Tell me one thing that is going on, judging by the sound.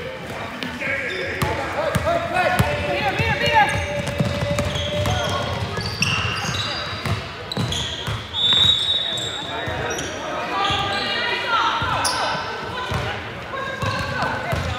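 Young girls shout and call out to each other in a large echoing hall.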